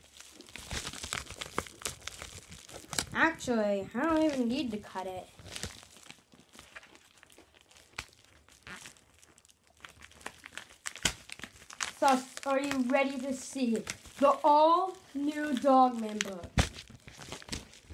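A paper envelope rustles and crinkles in hands.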